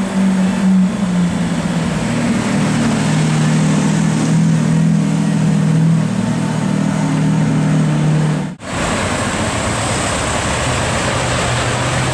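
Street traffic hums in the background.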